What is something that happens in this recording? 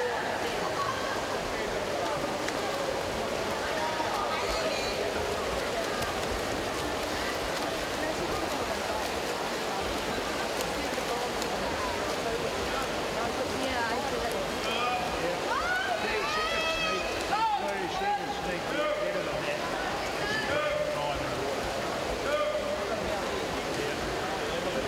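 A crowd cheers and roars in a large echoing hall.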